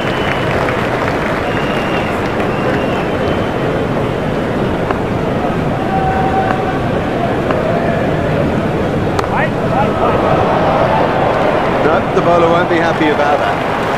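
A crowd roars steadily throughout.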